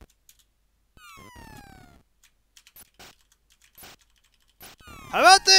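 Retro video game sound effects blip and sweep downward in pitch.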